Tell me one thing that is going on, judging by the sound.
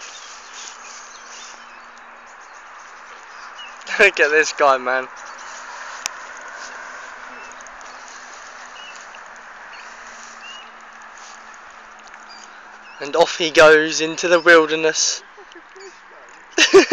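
A man wades slowly through shallow water, with water sloshing around his legs.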